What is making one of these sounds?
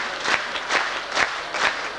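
A young boy sings through a microphone.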